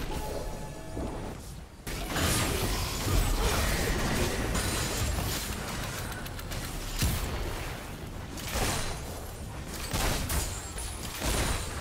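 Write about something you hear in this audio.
Magic spells whoosh and burst in a video game battle.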